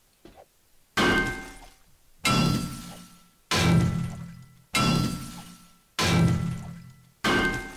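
A pickaxe strikes rock with heavy, ringing blows at a steady pace.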